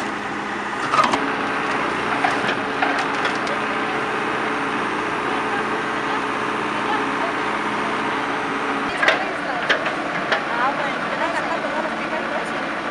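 Wooden boards crack and clatter as a digger bucket breaks through debris.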